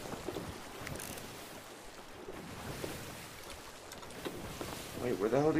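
Ocean waves wash and roll steadily.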